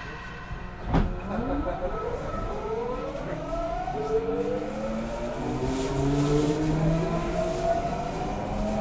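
A train's electric motors whine, rising steadily in pitch.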